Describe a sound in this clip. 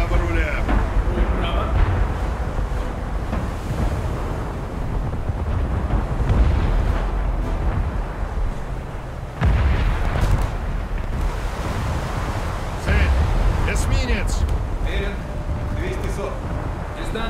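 A large ship's engines rumble low and steadily.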